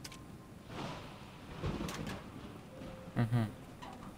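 A metal cabinet door creaks open.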